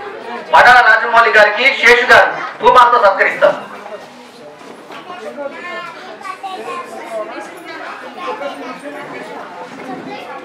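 A man speaks with animation into a microphone, heard through loudspeakers in an echoing hall.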